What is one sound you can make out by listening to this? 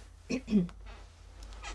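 A woman clears her throat.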